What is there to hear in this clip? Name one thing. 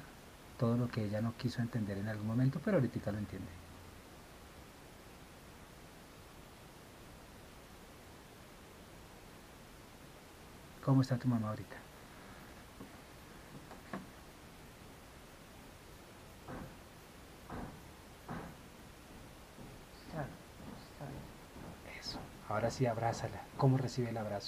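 A man talks calmly close by, in short bursts with long pauses.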